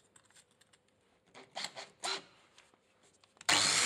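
A metal disc clicks and clatters as it is fitted onto an angle grinder.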